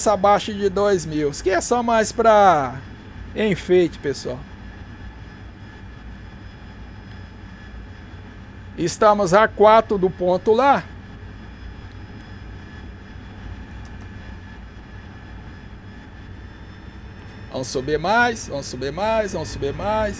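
A jet engine drones steadily in flight.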